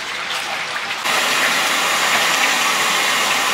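A plastic scoop scrapes through minced meat.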